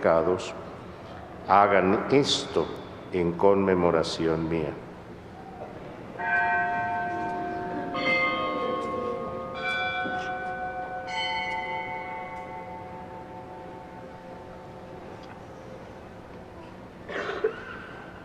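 A middle-aged man sings a prayer through a microphone in a large echoing hall.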